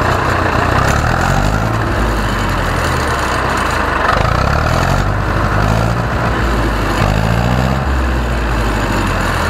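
A tractor engine revs up and down as a throttle is worked.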